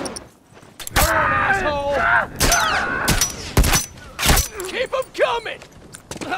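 A gun fires several shots.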